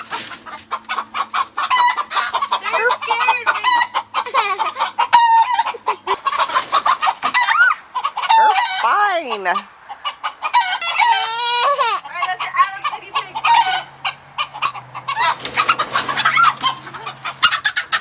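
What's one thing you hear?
Chickens cluck and chirp nearby.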